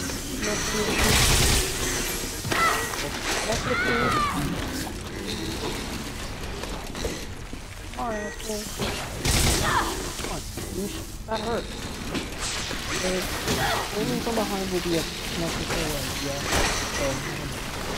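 Gunshots and game sound effects ring out.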